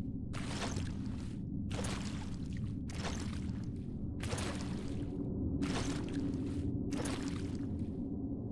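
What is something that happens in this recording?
Heavy metal armour clanks with each running footstep.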